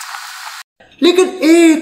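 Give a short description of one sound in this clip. A young man speaks loudly and with animation.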